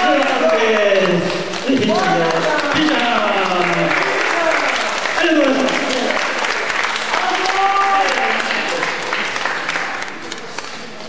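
A band plays acoustic guitars and other strings through loudspeakers.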